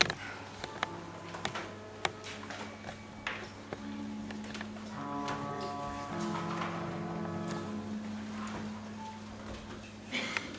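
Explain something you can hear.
A keyboard plays a few held notes.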